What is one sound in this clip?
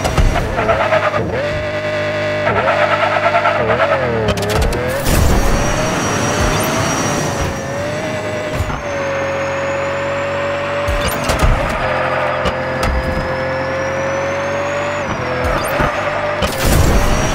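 A racing car engine whines steadily, rising and falling in pitch.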